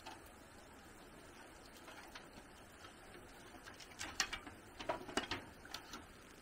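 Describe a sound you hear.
A bamboo blind rattles and clatters as it is lowered.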